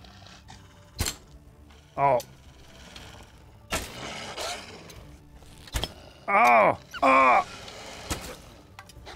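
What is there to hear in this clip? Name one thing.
A bowstring twangs sharply as an arrow is loosed, several times.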